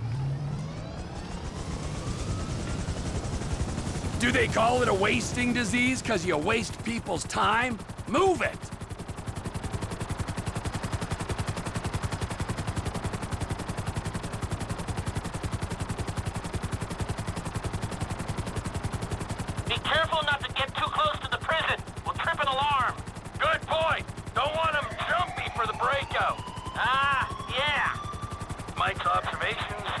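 A helicopter's rotor whirs and thumps steadily.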